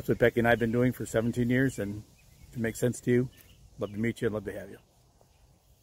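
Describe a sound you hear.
An elderly man speaks calmly and warmly, close to the microphone.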